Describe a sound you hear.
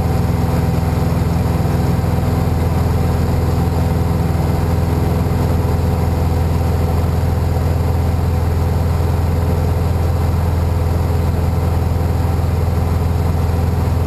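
A small plane's engine drones loudly and steadily from inside the cabin.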